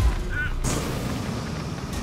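A fire burns with a crackling roar.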